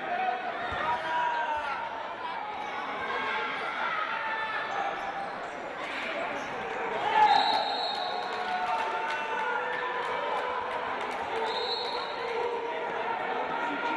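A large crowd cheers and shouts in an echoing indoor hall.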